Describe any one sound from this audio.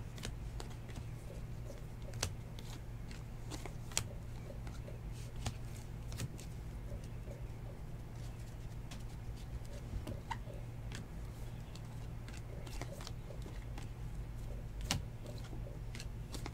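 Trading cards rustle and slide against each other in someone's hands.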